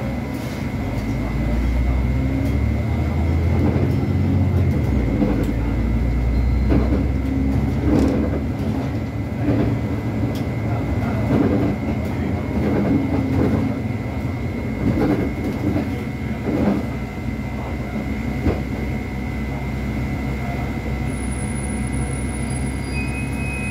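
A bus rattles and clunks over the road.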